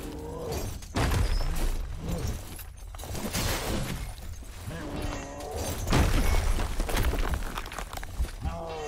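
Weapons clash and swoosh in a fight.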